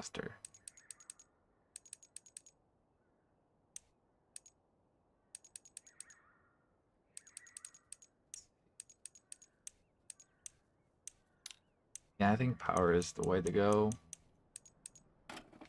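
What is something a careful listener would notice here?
Short game menu clicks tick repeatedly.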